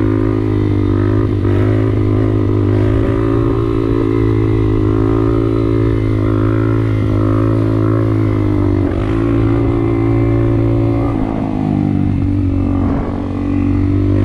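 A motorbike engine hums steadily close by, its pitch shifting slightly as it moves.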